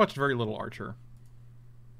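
A man speaks with animation close to a microphone.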